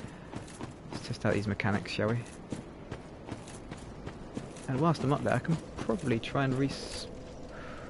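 Armoured footsteps crunch on gravel.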